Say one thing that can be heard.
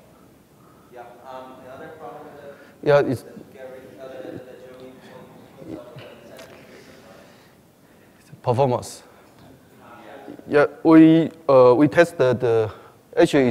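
A man speaks into a microphone, presenting in a room with some echo.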